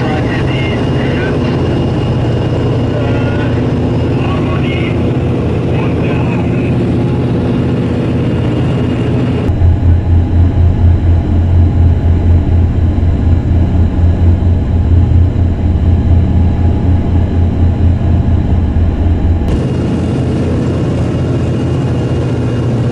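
Propeller engines drone loudly and steadily.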